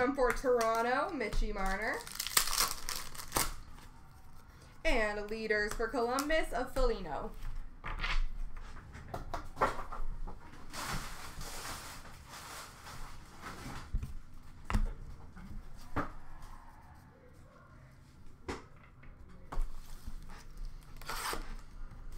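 Trading cards rustle and tap as they are handled and sorted by hand.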